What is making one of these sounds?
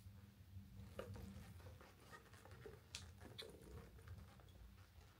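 A leather bag's metal clasp clicks and rattles.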